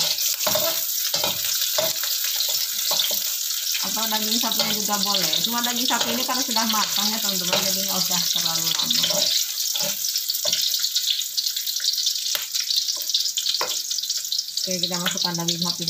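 Onions sizzle and crackle in hot oil.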